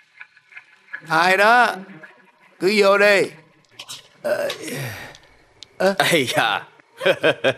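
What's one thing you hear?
A middle-aged man cries out and wails loudly nearby.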